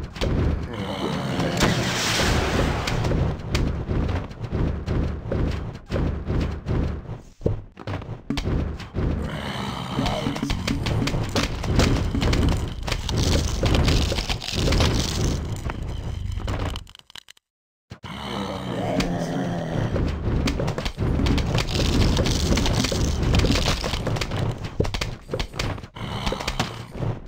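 Cartoon shots pop in quick succession.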